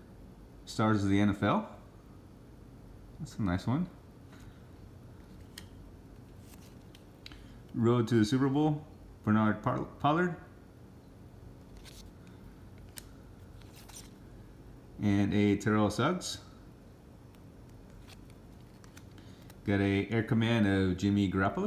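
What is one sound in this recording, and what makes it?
Stiff paper cards rustle and slide against each other in hands.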